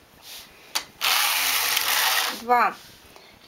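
A knitting machine carriage slides across with a rushing rattle.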